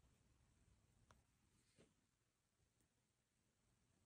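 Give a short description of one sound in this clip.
A book page is turned with a soft rustle.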